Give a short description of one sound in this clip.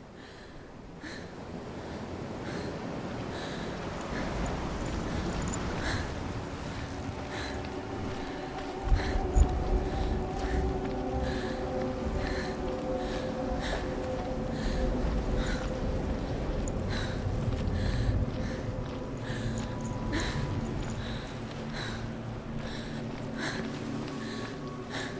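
Footsteps crunch steadily on wet sand and gravel.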